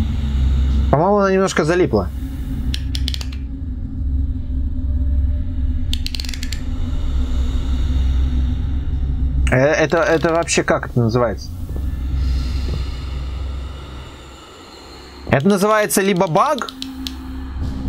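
A young man speaks quietly and hesitantly into a close microphone.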